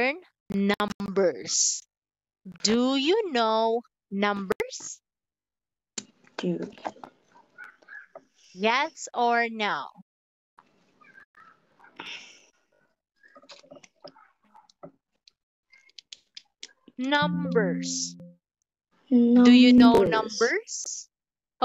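A young woman speaks animatedly into a headset microphone over an online call.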